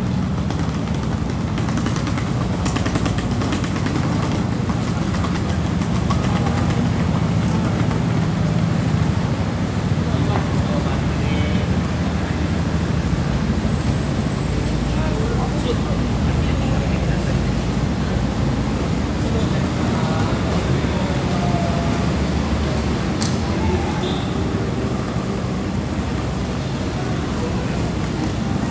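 A crowd of people murmurs nearby outdoors.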